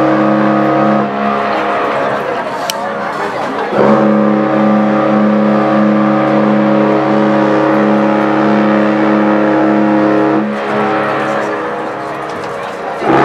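A brass band plays a slow, steady tune with long held notes.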